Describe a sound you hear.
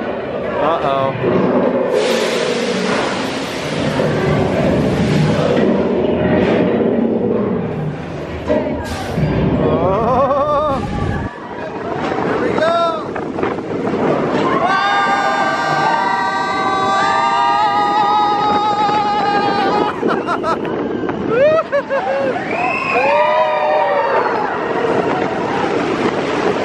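A roller coaster train rumbles and rattles along its track.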